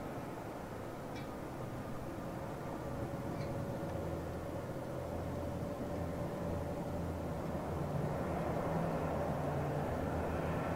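A jet airliner's engines roar steadily as the plane taxis past, growing slightly louder.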